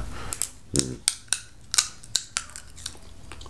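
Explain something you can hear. A man crunches food close by.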